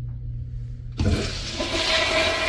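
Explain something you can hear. A toilet flushes with a loud rushing of water.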